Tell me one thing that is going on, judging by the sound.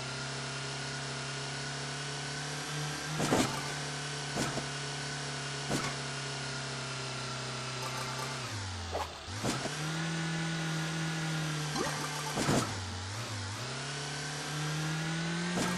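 A small car engine hums steadily, dropping in pitch now and then before revving up again.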